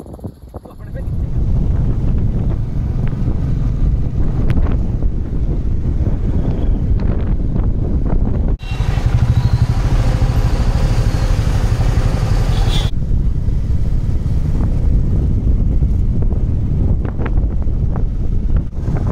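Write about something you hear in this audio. Tyres rumble steadily on a road as a car drives along.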